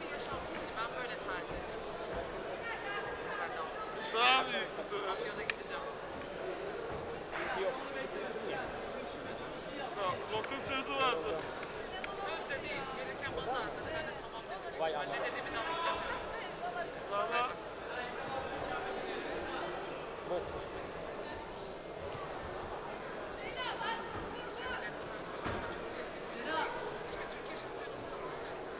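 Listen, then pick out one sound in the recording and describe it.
A crowd talks and shouts in a large echoing hall.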